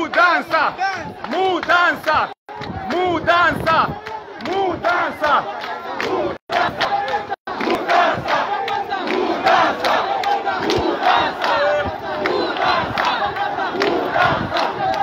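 A crowd of young men and women chants in unison while marching outdoors.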